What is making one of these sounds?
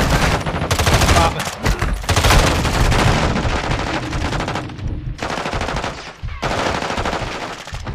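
A rifle fires a rapid burst close by.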